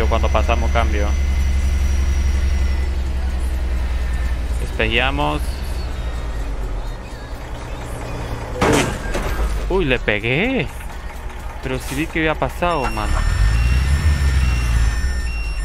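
A diesel semi-truck engine drones while cruising.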